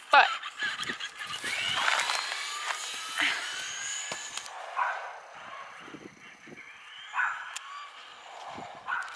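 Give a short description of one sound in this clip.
A toy remote-control car whirs as it speeds along the road.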